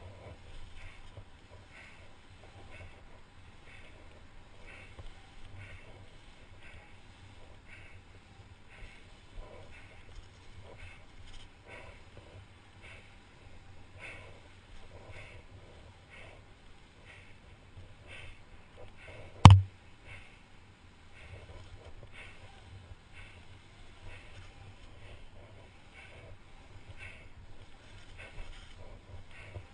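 Wind rumbles against a microphone.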